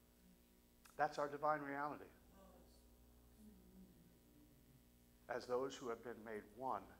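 A middle-aged man speaks calmly through a microphone in a large room.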